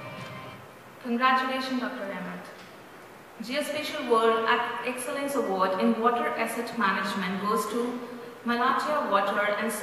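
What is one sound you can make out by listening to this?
A man speaks over a loudspeaker in an echoing hall.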